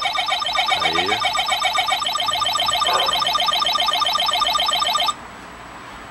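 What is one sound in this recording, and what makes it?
Retro arcade game sounds warble and chirp rapidly.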